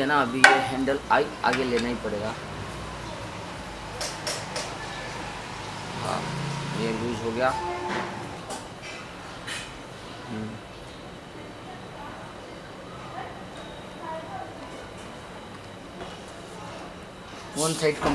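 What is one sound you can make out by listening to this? A ratchet wrench clicks as bolts are tightened on metal.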